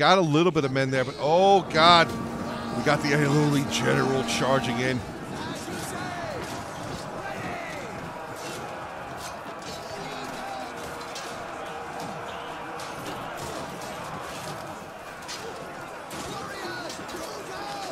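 A crowd of soldiers shouts and clamours in battle.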